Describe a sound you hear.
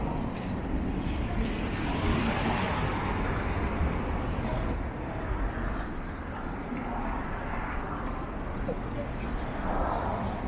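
Traffic hums steadily through a busy street outdoors.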